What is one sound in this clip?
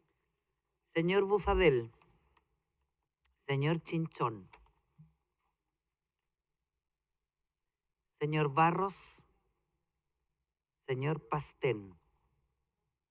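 An older woman speaks calmly into a microphone in short, separate phrases.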